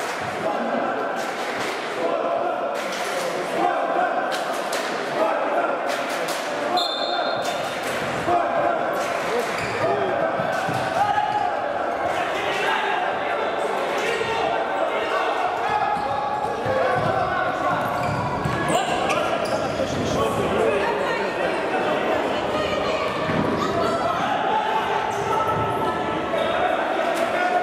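Men shout during play in an echoing indoor hall.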